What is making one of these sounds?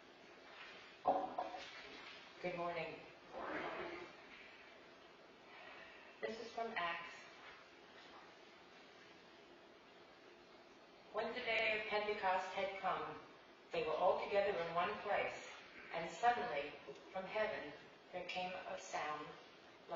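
A woman speaks calmly through a microphone in a large echoing room.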